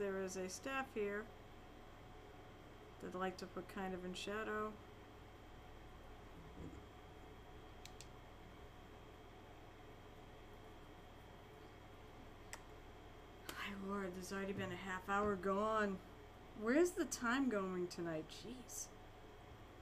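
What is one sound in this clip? A young woman talks casually into a microphone, in short bursts.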